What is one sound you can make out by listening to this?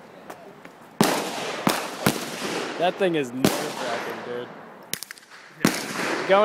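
Gunshots crack outdoors, one after another, each echoing briefly.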